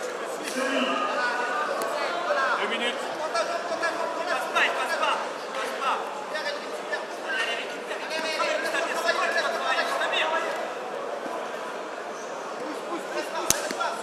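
A crowd of men and women talks and shouts in a large echoing hall.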